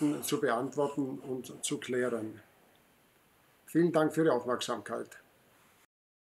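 A middle-aged man speaks calmly and clearly into a close microphone.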